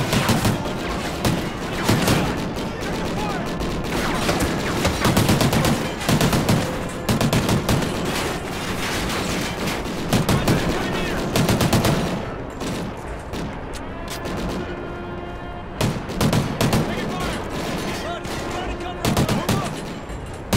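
Rapid bursts of automatic gunfire crack and echo.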